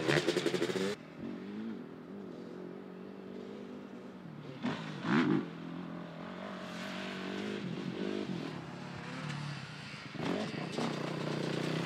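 A quad bike engine hums in the distance.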